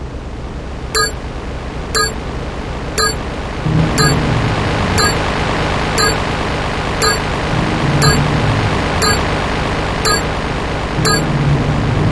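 Short electronic beeps sound once a second as a timer counts down.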